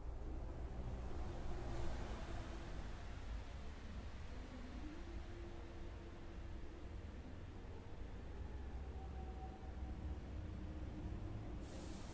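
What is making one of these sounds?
A man chants slowly in long, held tones into a microphone, heard through a loudspeaker.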